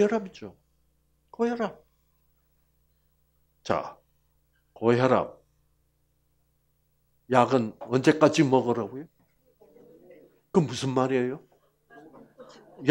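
An elderly man speaks calmly through a headset microphone, pausing often.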